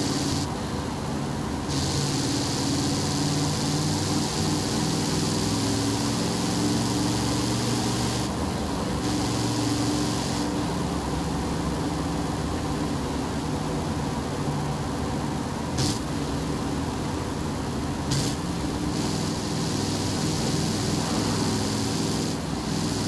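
A truck engine hums steadily and changes pitch as the truck speeds up and slows down.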